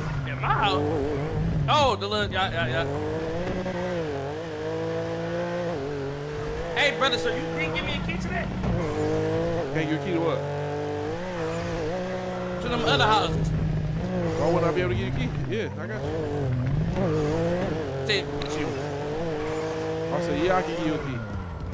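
A car engine revs and roars steadily, rising and falling in pitch.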